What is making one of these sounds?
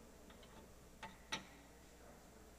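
Footsteps sound across a hard floor in a large echoing hall.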